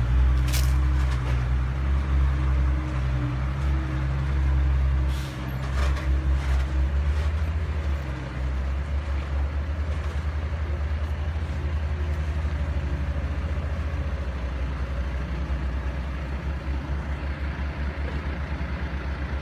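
A diesel engine idles close by with a steady throbbing chug.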